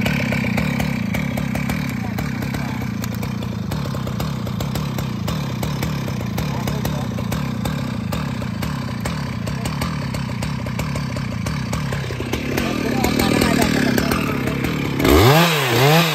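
A chainsaw engine idles with a steady rattling putter.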